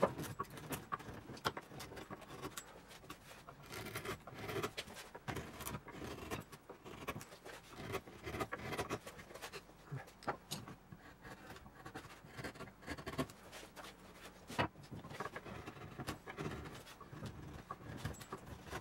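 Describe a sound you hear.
A chisel scrapes and clicks against wood.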